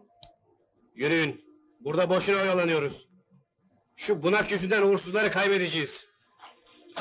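A man speaks loudly and firmly, close by.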